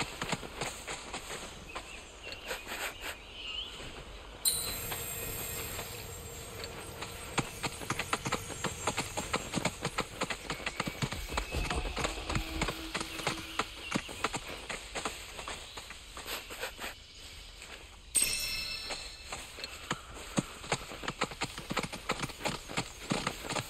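A large bird's feet patter quickly over grass and stone.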